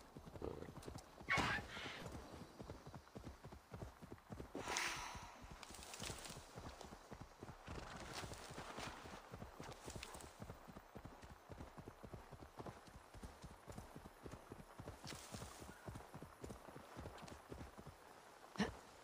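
A wolf's paws patter quickly over grass and undergrowth.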